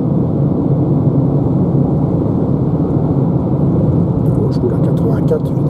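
Tyres hum steadily on the road inside a moving car.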